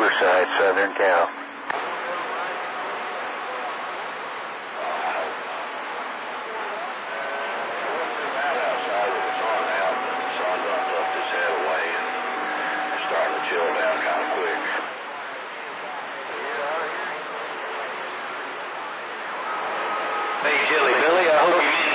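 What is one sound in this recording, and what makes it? Static hisses and crackles from a radio receiver.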